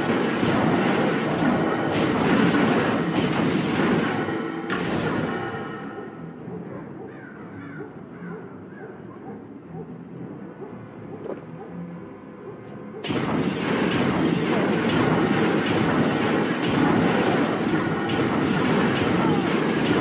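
Magic blasts burst with a loud crackle.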